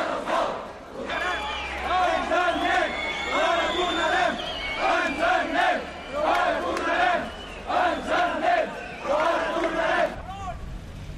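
A crowd chants in rhythm outdoors.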